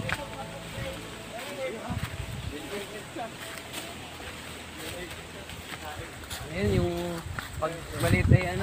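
Young people talk and call out nearby, outdoors.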